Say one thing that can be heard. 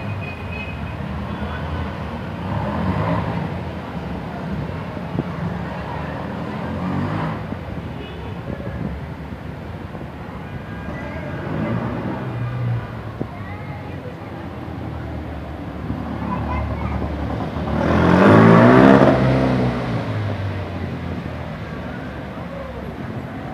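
Old car engines rumble as cars drive slowly along a narrow street.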